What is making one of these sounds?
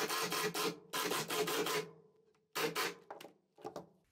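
An impact driver rattles in short bursts, driving a screw.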